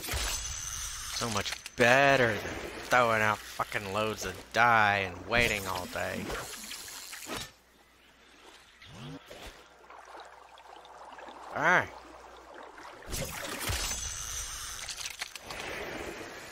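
Water laps and splashes against a rocky shore.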